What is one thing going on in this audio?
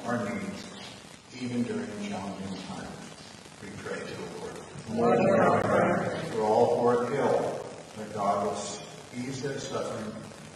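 An elderly man speaks calmly into a microphone, in a large echoing room.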